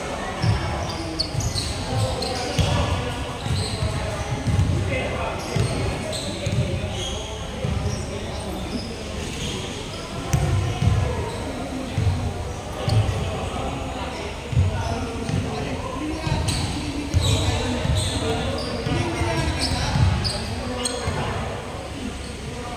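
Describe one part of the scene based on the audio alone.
Sneakers squeak on a hall floor.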